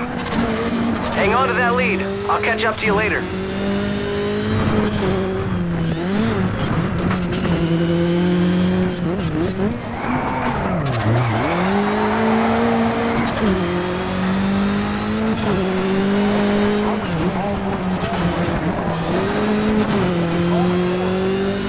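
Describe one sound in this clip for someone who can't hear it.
A racing car engine roars and revs up and down between gear changes.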